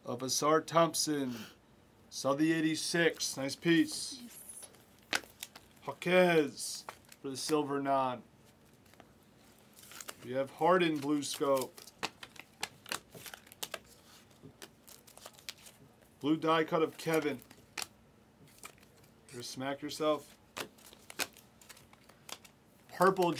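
Trading cards and wrappers rustle and crinkle in hands.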